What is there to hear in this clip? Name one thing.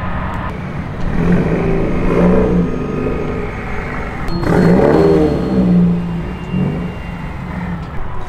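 A car engine revs loudly as a car drifts past.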